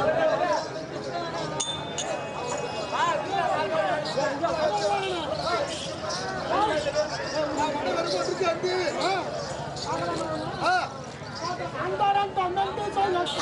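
Ankle bells jingle as dancers stamp their feet.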